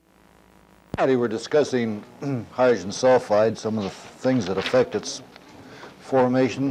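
An elderly man speaks calmly and steadily, as if lecturing.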